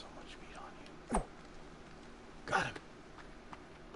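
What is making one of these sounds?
An axe swishes through the air.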